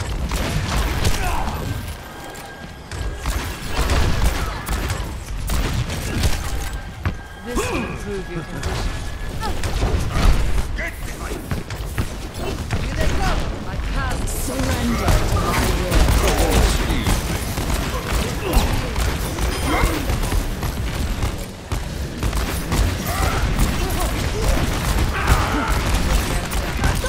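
Rapid gunfire from a video game pistol cracks repeatedly.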